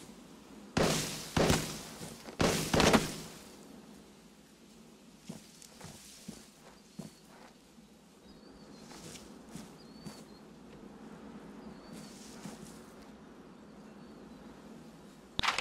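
Leaves rustle as a man pushes through dense bushes.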